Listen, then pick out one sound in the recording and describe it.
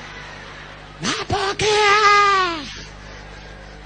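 A man shouts a long, drawn-out call through a microphone and loudspeakers.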